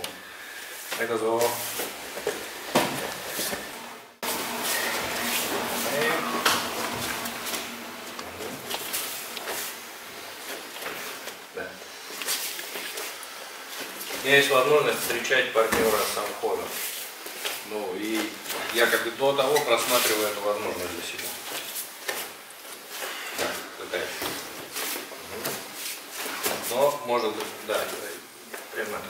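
A middle-aged man explains calmly.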